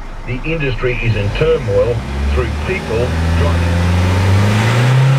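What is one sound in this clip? A car engine revs up, heard from inside the car.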